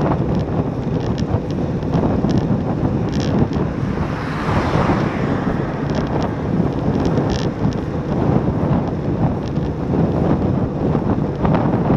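Wind roars and buffets steadily while riding fast outdoors.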